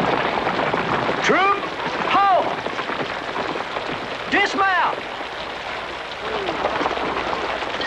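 Horses' hooves splash and clop on wet ground.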